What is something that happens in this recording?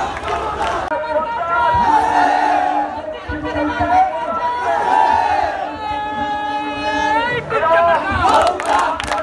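A man shouts slogans through a megaphone.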